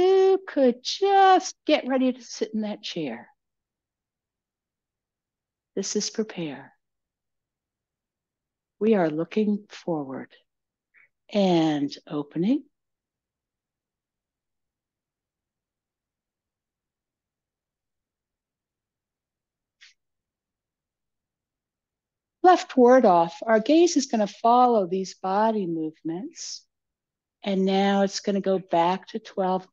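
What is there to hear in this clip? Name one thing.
A middle-aged woman speaks calmly and clearly into a close microphone, pausing often.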